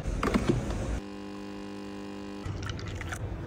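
A coffee machine hums steadily as coffee pours.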